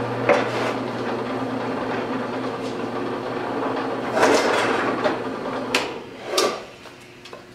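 A drill press motor hums steadily.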